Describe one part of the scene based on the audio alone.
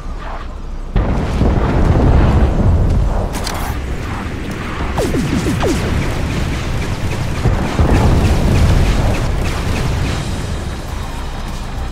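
Heavy guns fire in loud, rapid bursts.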